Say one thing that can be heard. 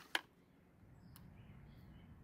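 A small plastic switch clicks close by.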